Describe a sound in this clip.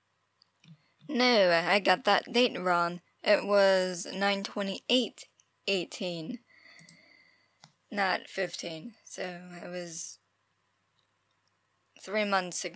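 A young woman speaks close to a microphone, with animation, pausing now and then.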